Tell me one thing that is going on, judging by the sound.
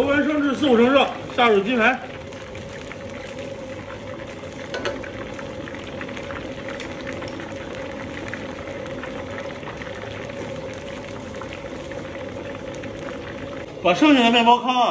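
Hot oil sizzles and bubbles steadily as food fries.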